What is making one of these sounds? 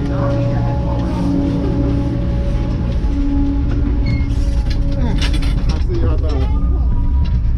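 Lift machinery hums and whirs nearby.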